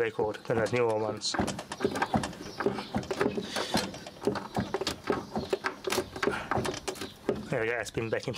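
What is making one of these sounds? A control knob clicks as it is turned.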